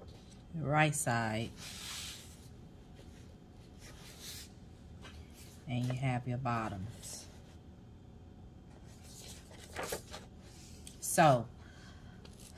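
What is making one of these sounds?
Sheets of paper slide and rustle against a hard board.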